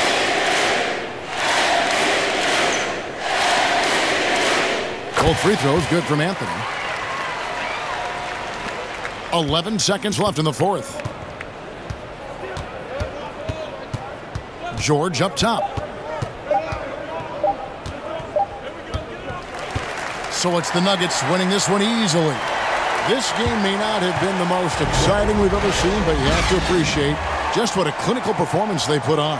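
A large crowd roars and cheers in an echoing arena.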